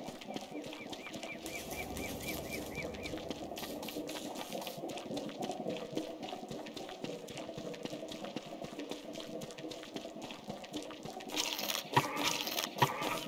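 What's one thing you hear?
Footsteps of a game character patter across the ground.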